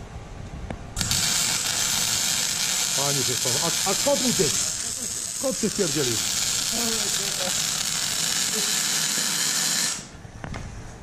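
An electric arc welder crackles and hisses steadily.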